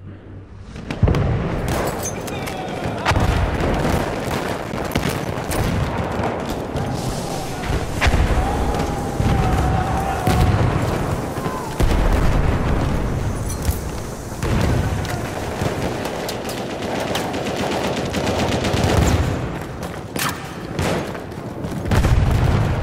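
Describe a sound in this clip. Gunfire cracks and booms close by.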